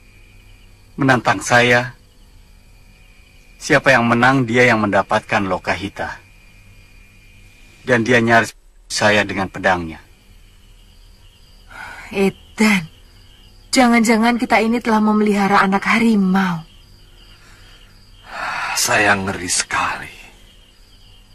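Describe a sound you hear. A middle-aged man speaks gravely, close by.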